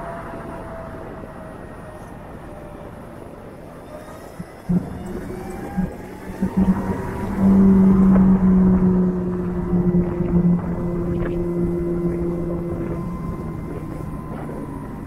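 A motorcycle engine hums up close and revs.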